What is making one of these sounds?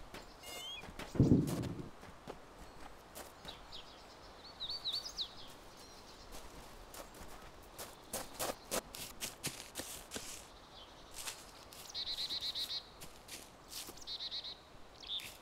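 Footsteps rustle through grass and leaves at an uneven pace.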